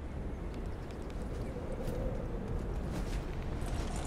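Footsteps thud quickly on hard ground as a soldier runs.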